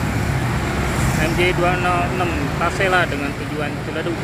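A bus horn plays a loud warbling tune.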